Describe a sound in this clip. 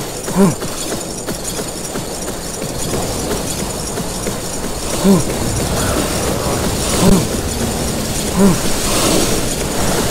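Footsteps run across loose sand.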